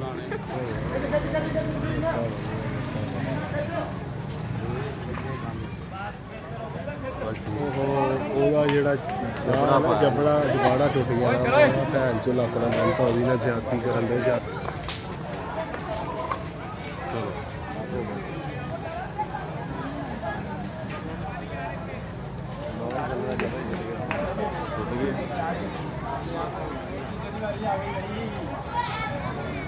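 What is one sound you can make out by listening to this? Several men shout and talk excitedly outdoors nearby.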